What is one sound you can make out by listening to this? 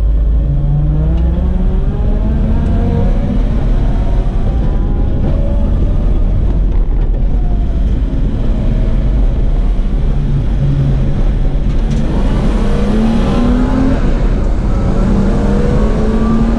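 Tyres rumble over the track surface.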